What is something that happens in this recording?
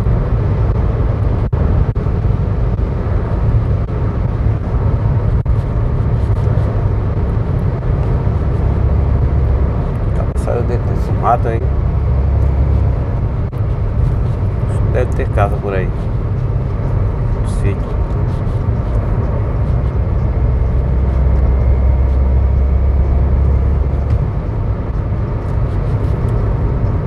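A car drives steadily along a road, with a low rumble of engine and tyres.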